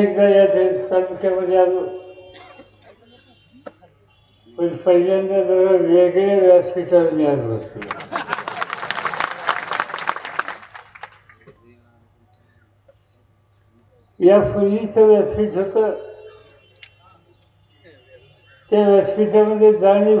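An elderly man speaks forcefully into a microphone over loudspeakers, pausing between phrases.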